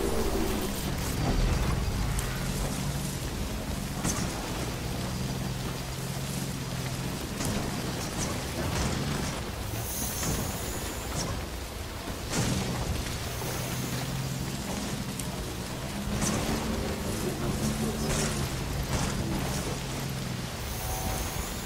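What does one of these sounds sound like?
Wheels thump and rattle over rough, rocky ground.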